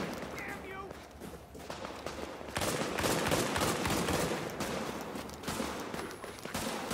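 Footsteps crunch on snow as a game character runs.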